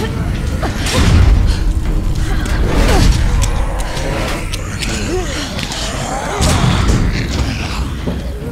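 A metal gate rattles and clanks under pushing hands.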